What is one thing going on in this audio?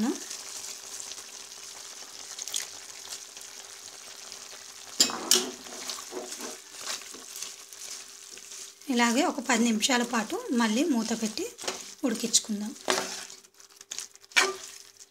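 Food sizzles and hisses in a hot pan.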